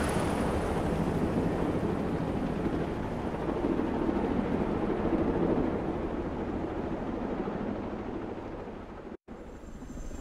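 Helicopter rotors thump and roar loudly.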